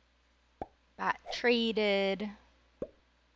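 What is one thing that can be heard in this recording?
A woman speaks briefly with animation close to a microphone.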